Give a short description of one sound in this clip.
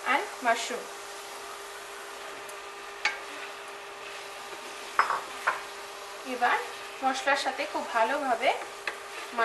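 A wooden spatula scrapes and knocks against a pan while stirring food.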